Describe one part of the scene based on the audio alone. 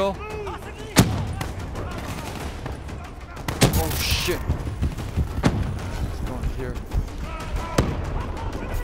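Sharp gunshots crack now and then.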